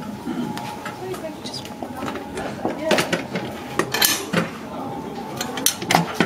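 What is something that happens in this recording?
Metal and glass pieces clink and rattle as they are handled.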